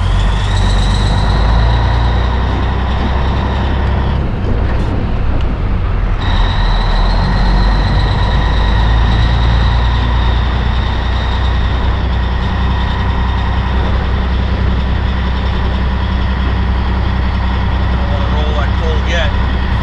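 A truck's diesel engine idles with a steady low rumble.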